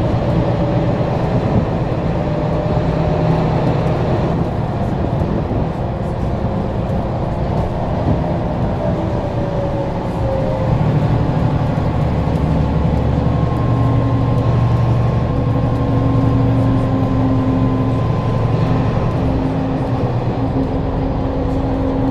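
A car engine hums steadily, shifting pitch as it drives.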